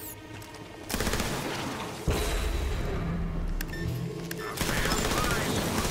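Guns fire in rapid bursts in a video game.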